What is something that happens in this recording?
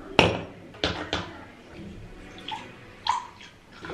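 A liquid pours into a glass.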